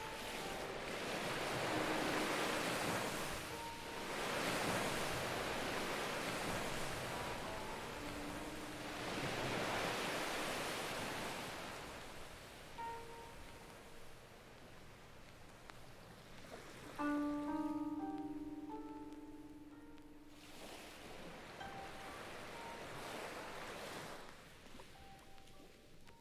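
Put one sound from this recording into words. Electronic music plays, with rising and falling hissing sweeps and short synth notes.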